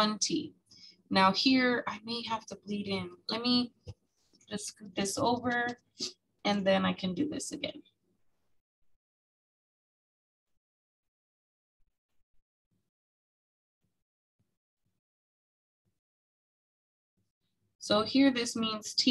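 A woman explains calmly through a microphone.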